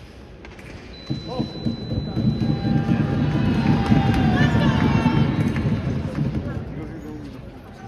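A young man shouts loudly in celebration in a large echoing hall.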